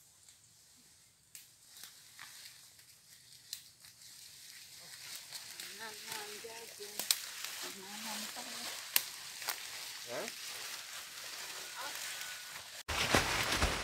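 Footsteps crunch through dry leaves, drawing closer.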